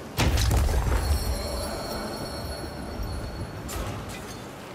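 A bright magical chime rings out and fades.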